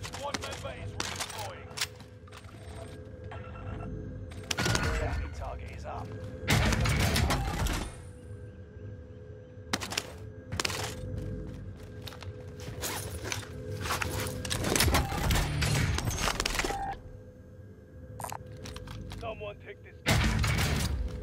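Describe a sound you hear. Gear rattles as items are picked up.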